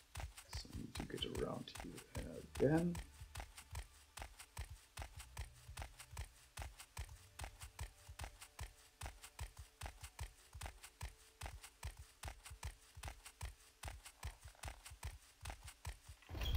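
Footsteps tap quickly and steadily on a stone floor.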